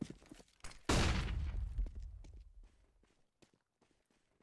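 A stun grenade goes off with a loud bang and a ringing hiss.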